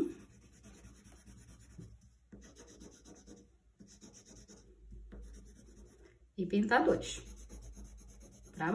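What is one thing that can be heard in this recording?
A pencil scratches softly back and forth on paper.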